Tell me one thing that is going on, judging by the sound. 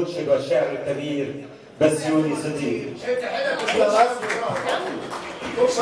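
An elderly man speaks and laughs nearby.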